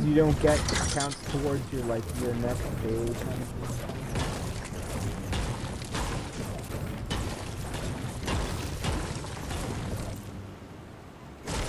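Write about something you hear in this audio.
A pickaxe strikes rock with repeated sharp knocks.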